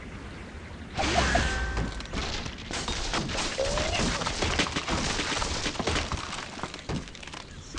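Wooden blocks crash and clatter as a structure collapses.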